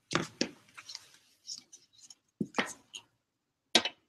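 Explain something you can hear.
A plastic object knocks lightly against a hard surface.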